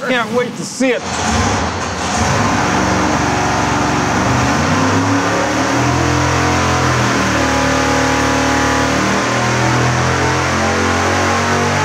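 A powerful engine roars loudly, revving up in rising steps.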